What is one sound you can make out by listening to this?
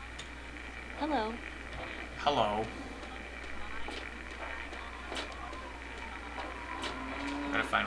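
Footsteps crunch over rubble at a walking pace.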